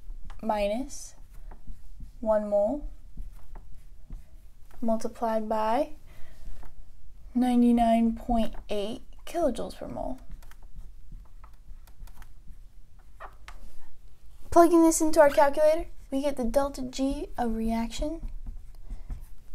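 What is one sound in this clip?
A young woman speaks calmly, explaining, close by.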